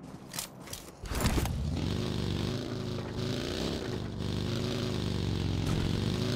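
A buggy's engine starts and hums steadily.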